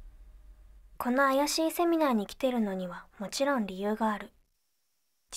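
A young woman speaks calmly and close.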